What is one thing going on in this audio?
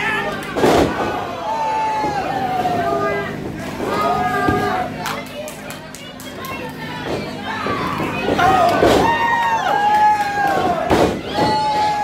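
Wrestlers' bodies thud onto a wrestling ring's canvas.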